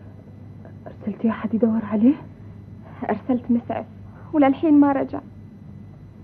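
A young woman speaks in an upset voice, close by.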